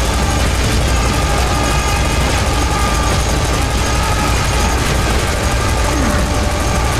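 A heavy rotary gun fires in a rapid, unbroken stream of shots.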